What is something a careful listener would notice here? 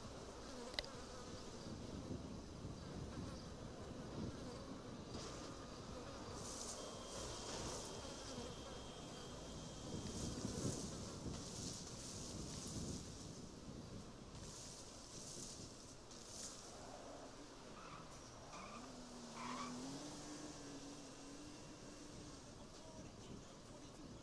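Leafy branches rustle and brush as someone pushes through dense bushes.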